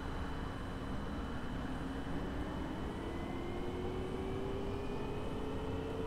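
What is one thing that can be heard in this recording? A bus engine rises in pitch as the bus pulls away.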